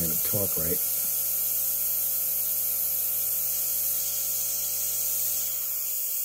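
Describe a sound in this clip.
An airbrush hisses steadily, spraying close by.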